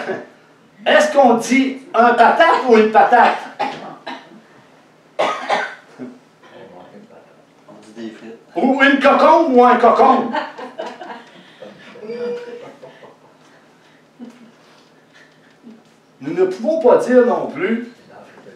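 An older man speaks with animation, pausing between phrases.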